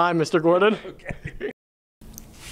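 A middle-aged man laughs close to a microphone.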